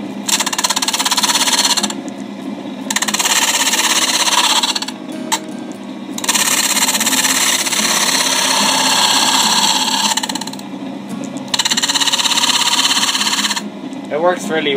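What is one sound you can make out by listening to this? A disc sander grinds wood in loud, hissing bursts.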